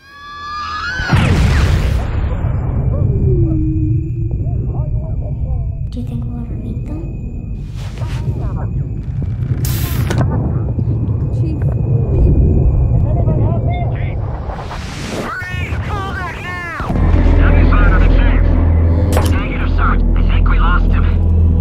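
A deep rumble roars and swells.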